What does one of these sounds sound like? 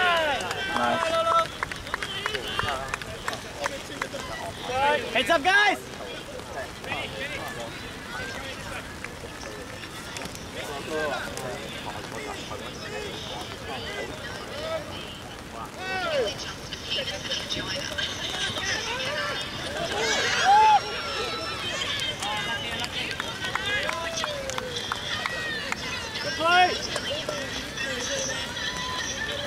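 A crowd of young spectators shouts and cheers outdoors, some distance away.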